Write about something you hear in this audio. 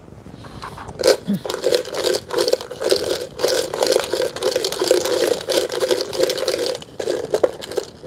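A plastic container rustles and crackles in hands.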